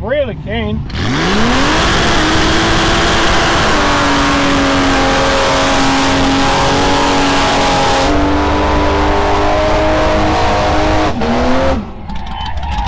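A car engine revs hard and roars at high speed close by.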